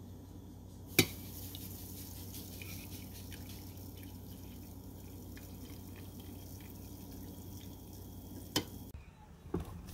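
Coffee pours and trickles into a mug.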